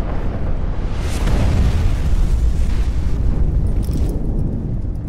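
A heavy body crashes into the ground with a deep rumbling boom.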